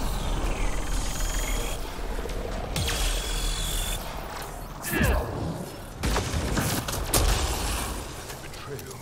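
Guns fire in rapid bursts with energy blasts.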